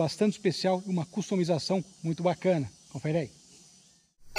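A man talks calmly and cheerfully close to the microphone.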